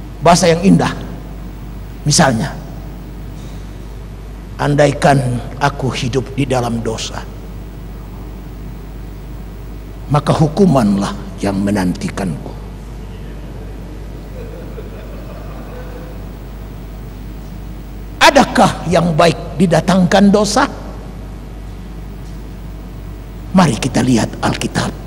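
A middle-aged man preaches with animation through a microphone, in bursts with pauses.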